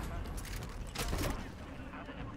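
A gun fires a short burst.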